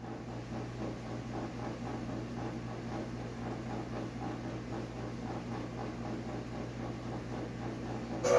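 A television hisses with static and a low steady hum.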